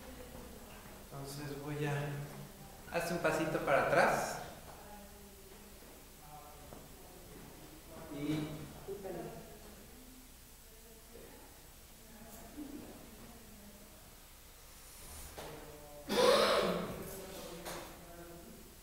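A woman talks nearby in a casual voice.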